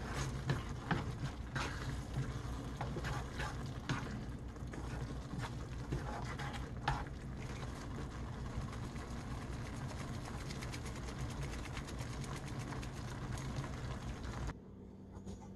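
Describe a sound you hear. A sauce bubbles and sizzles in a pan.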